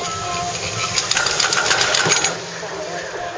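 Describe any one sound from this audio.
A chairlift clatters and rattles as it runs over the wheels of a lift tower.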